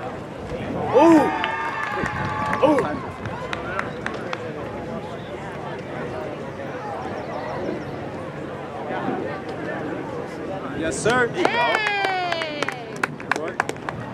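A crowd cheers and whoops loudly.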